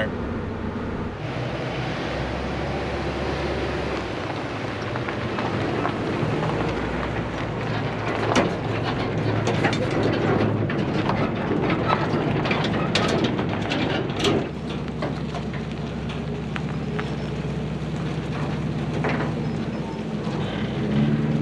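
A truck's diesel engine rumbles steadily.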